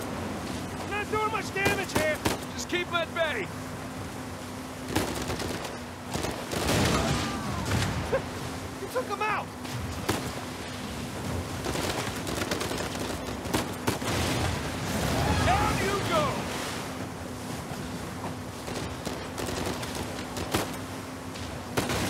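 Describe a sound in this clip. Waves crash and spray against a speeding boat's hull.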